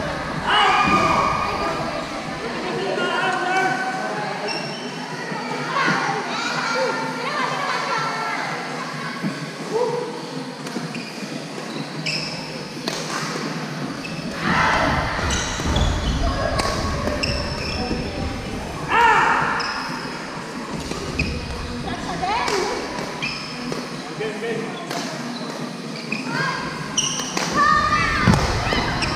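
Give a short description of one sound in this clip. Young women call out and shout during play.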